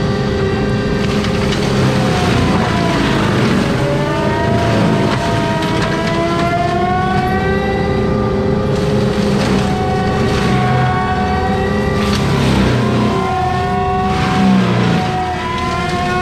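Wood and brush crack and shred against the mulcher's teeth.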